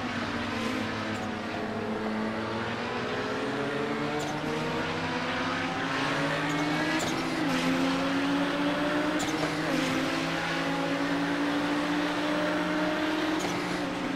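A race car engine roars steadily, shifting up through the gears.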